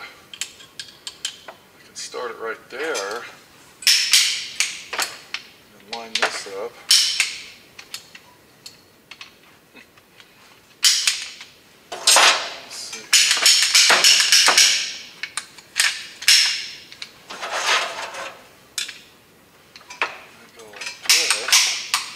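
Metal tools clink and rattle in a plastic case.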